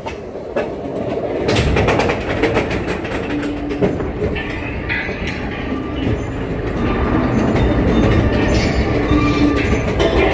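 A chain lift clanks steadily as a coaster car climbs a slope.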